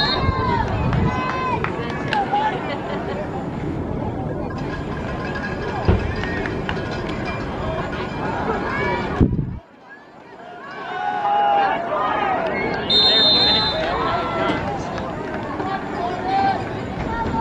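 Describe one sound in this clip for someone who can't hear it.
A crowd chatters and cheers.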